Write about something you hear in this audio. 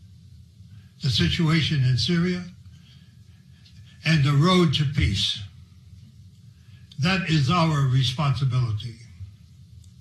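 An elderly man speaks slowly into a microphone, in short phrases with pauses.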